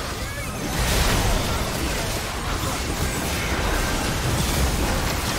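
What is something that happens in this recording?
Game spell effects crackle and blast during a fight.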